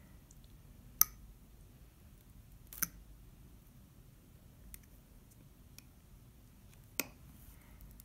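A knife handle taps against a hard surface.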